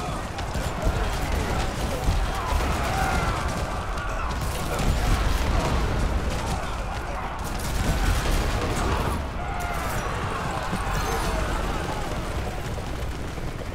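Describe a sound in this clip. Engines of game vehicles rumble steadily.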